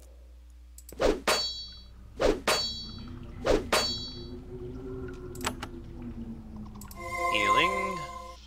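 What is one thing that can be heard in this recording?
Metal blades clash and strike in a fight.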